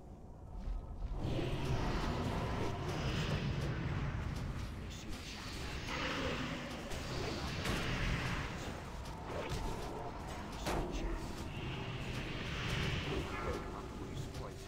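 Magic blasts and weapon hits clash in a noisy game battle.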